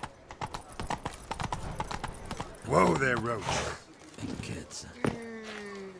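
A horse's hooves clop on cobblestones.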